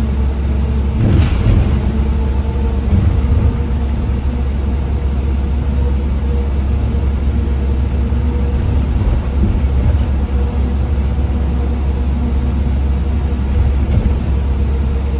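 The bus body rattles and knocks now and then as it rolls over the road.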